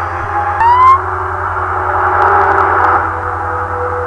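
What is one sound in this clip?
A siren wails briefly nearby.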